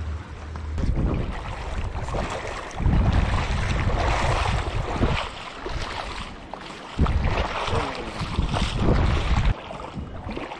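Feet wade and splash through shallow water.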